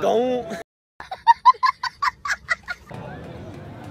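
A young boy laughs loudly.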